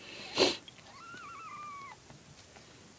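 A kitten gives a short, high mew.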